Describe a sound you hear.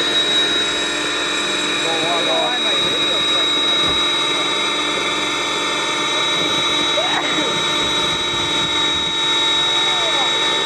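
A small model helicopter buzzes steadily overhead.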